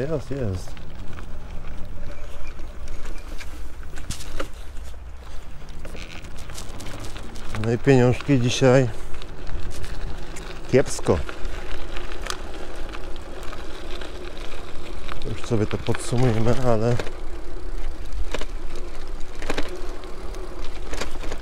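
Bicycle tyres roll and crunch over gravel and dirt.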